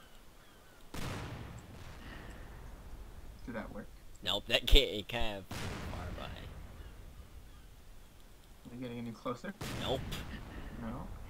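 A cannon fires with a loud boom, several times.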